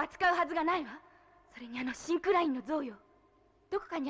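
A young woman speaks anxiously.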